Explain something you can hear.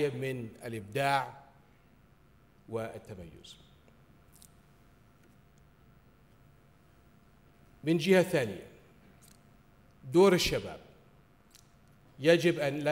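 A middle-aged man gives a formal speech through a microphone in a large hall, with long pauses.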